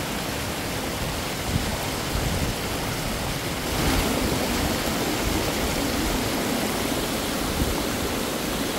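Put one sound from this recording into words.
A small waterfall trickles and splashes over rocks outdoors.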